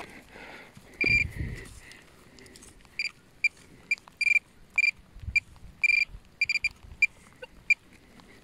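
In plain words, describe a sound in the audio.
A handheld pinpointer beeps in short, sharp bursts.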